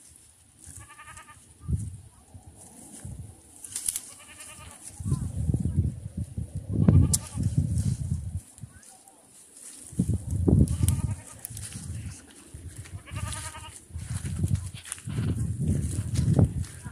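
Leafy stems rustle and snap as plants are pulled by hand.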